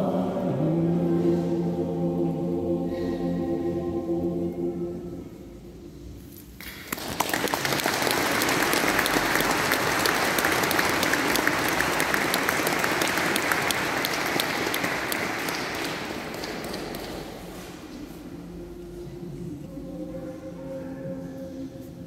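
A mixed choir sings in a large echoing hall.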